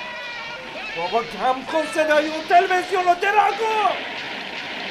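A man cries out loudly.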